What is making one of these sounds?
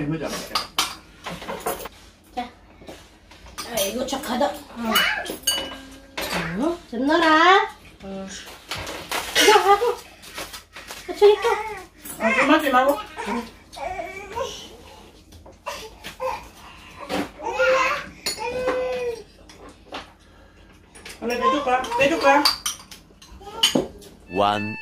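Chopsticks and dishes clink on a table.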